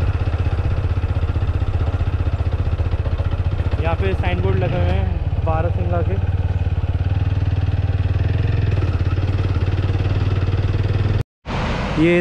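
An engine hums steadily while riding along.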